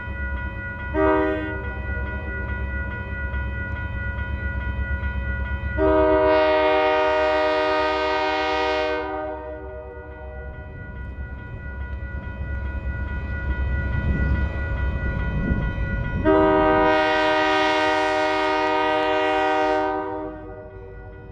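A locomotive horn blares in short and long blasts.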